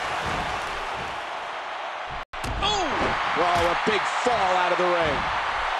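A large crowd cheers and roars loudly throughout.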